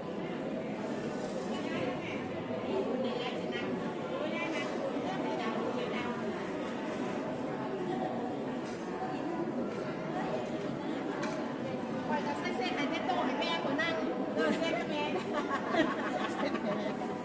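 A crowd of people chatters throughout a large echoing hall.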